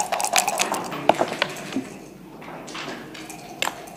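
Dice rattle and tumble onto a board.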